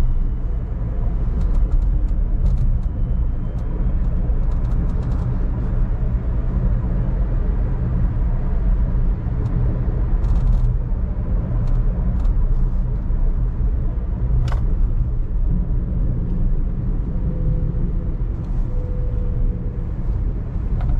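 A car drives along a road with a steady low rumble inside the cabin.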